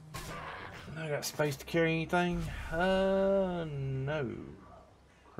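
A middle-aged man speaks in a drawn-out, animated voice close to a microphone.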